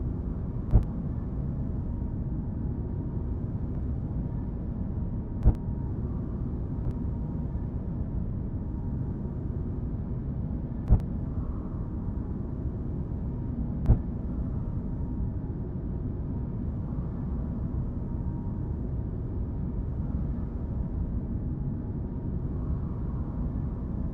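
A spaceship's engines hum with a low, steady rumble.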